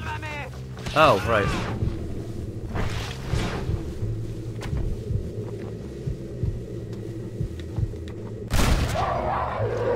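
A rifle fires loud, sharp shots.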